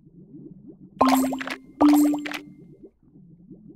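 Bright sparkling chimes ring twice as cards snap into place.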